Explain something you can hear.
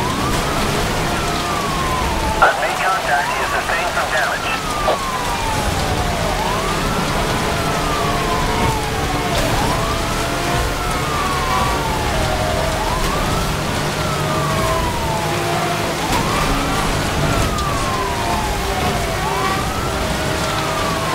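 A police siren wails steadily, rising and falling.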